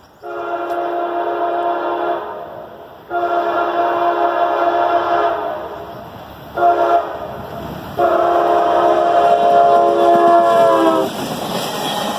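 A train horn blows several long, loud blasts.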